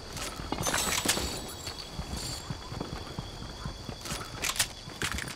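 Footsteps patter quickly over grass.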